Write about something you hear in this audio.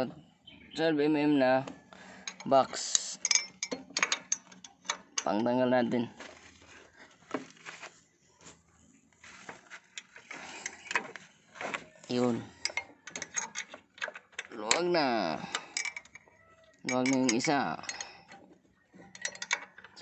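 A metal wrench clicks and taps against metal parts.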